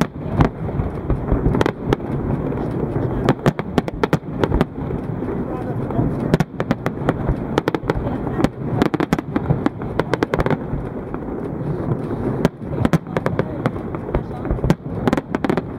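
Fireworks burst with sharp bangs and crackles.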